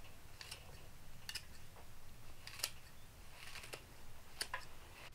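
Fresh green stalks snap crisply between fingers.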